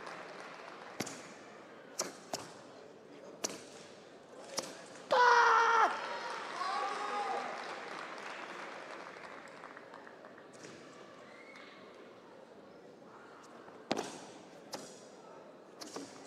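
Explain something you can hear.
A karate uniform snaps sharply with quick strikes.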